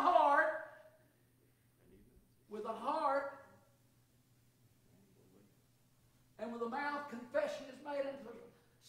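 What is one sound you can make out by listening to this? A man speaks in short phrases in an echoing room.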